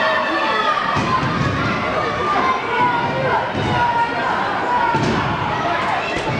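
Wrestlers thud onto a ring mat.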